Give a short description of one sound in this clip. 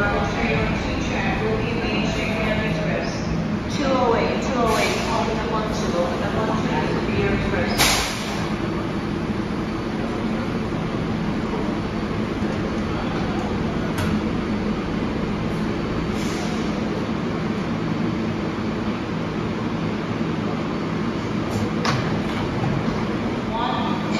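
A subway train rumbles along the platform and slows to a stop.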